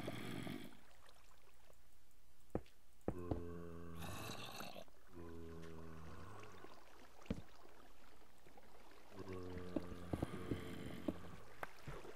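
Water trickles and flows nearby.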